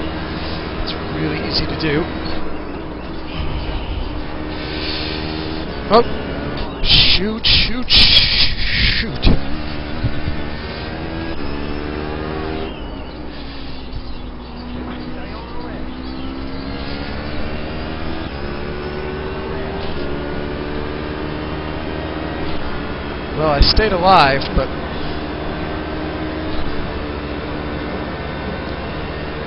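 A racing car engine roars and whines, rising and falling in pitch as it shifts gears.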